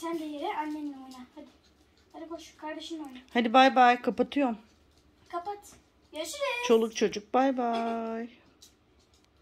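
A boy talks and laughs nearby with animation.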